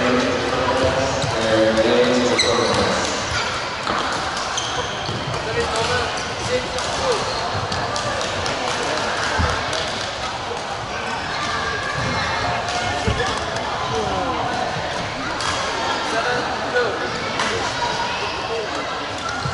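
Shuttlecocks are struck with rackets in sharp pops.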